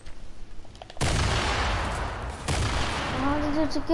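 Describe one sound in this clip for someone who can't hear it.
A loud blast bursts out and hisses away.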